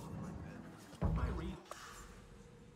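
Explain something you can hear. A short whoosh sounds as a game menu opens.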